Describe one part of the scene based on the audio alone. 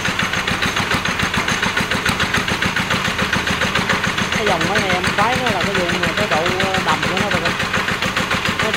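A single-cylinder diesel engine runs with a fast, steady chugging knock.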